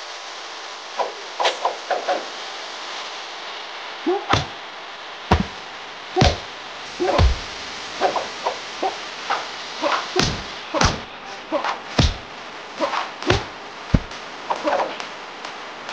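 Weapons clash and heavy blows land in quick bursts.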